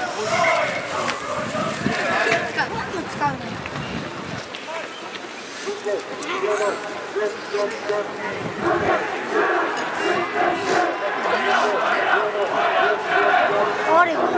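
Young men shout calls to each other outdoors on an open field.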